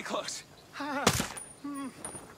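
A suppressed rifle fires a single shot.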